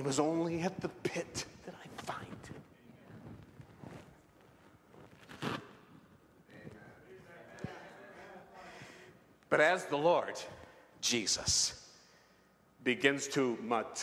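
A man preaches with animation into a microphone, in a large echoing hall.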